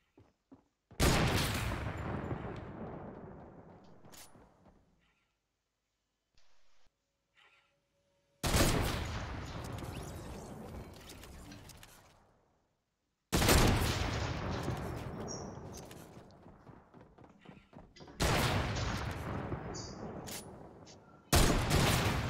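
A rifle fires loud shots that boom and echo away.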